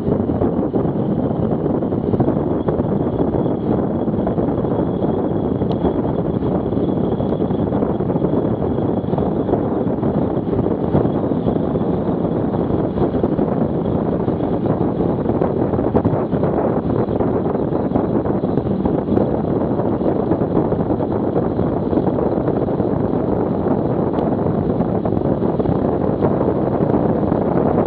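A motorcycle engine hums steadily while riding through an echoing tunnel.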